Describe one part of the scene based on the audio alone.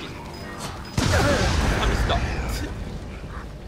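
A loud explosion booms and rumbles.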